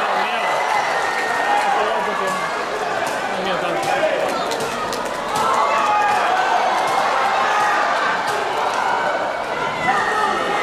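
Bare feet slap and thud on a mat.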